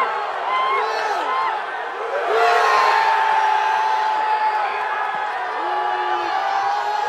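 A huge stadium crowd roars and cheers loudly.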